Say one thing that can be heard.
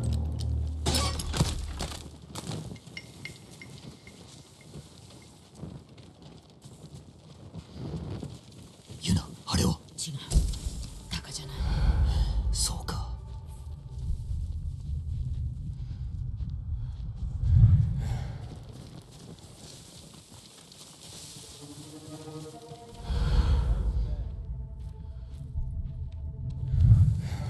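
Footsteps pad quickly over soft ground.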